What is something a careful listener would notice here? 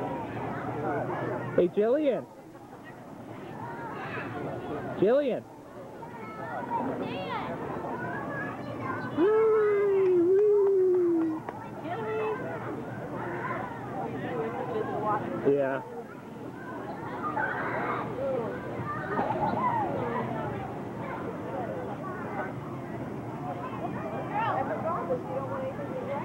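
A young woman talks and laughs cheerfully close by.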